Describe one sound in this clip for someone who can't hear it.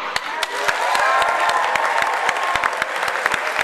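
A crowd of children cheers and shouts loudly in a large echoing hall.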